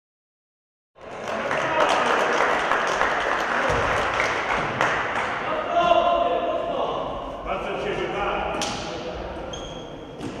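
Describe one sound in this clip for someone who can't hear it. Sneakers squeak on a hard court, echoing in a large hall.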